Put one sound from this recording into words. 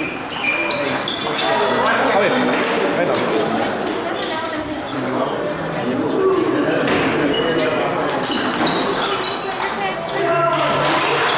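Many people chatter in the background.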